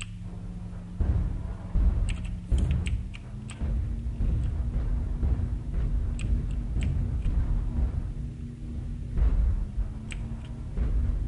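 A heavy machine rumbles low and steadily.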